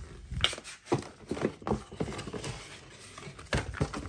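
Papers and cardboard rustle and scrape.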